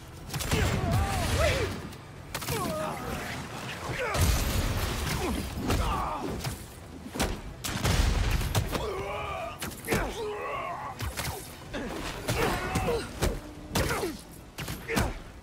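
Heavy blows and blasts thud and boom in a game's fight.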